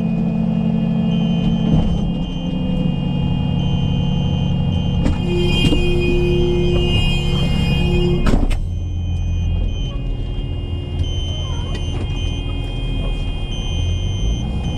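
A heavy diesel tow truck engine rumbles.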